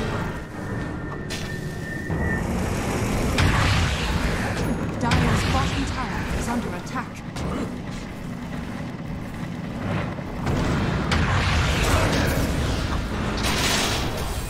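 Spell effects crackle and whoosh in a fantasy battle.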